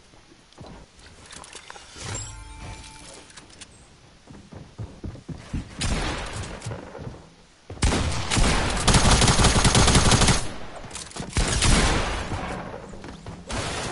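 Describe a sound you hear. Game sound effects of building and shooting clatter in loud bursts.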